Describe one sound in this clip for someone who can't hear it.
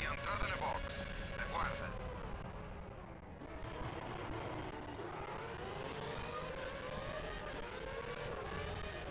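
A racing car engine whines high and revs up and down.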